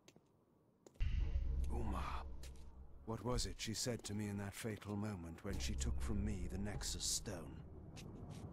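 A game character speaks in a deep, menacing voice.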